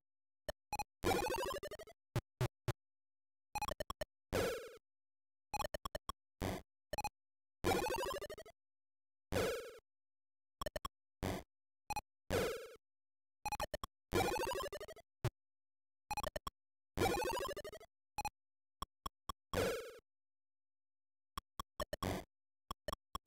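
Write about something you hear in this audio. Retro video game sound effects bleep and chirp in short, repeated bursts.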